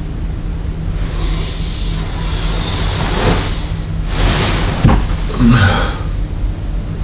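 Bedsheets rustle as a man turns over in bed.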